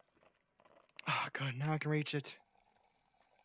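A coffee machine hums loudly as it brews.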